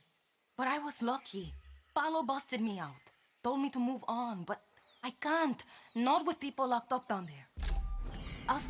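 A young woman speaks calmly and earnestly, close by.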